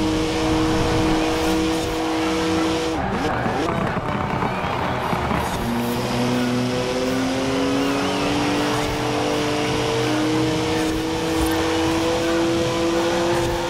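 A sports car engine roars at high revs, drops off for a corner and climbs again through the gears.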